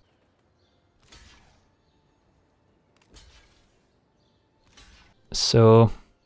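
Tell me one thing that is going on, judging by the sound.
Game cards slide into place with soft whooshing effects.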